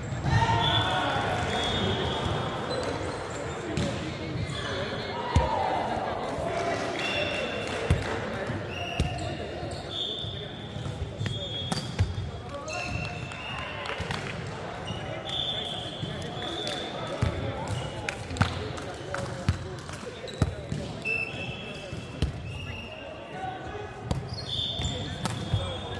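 A volleyball thuds off hands and bounces on a hard floor in a large echoing hall.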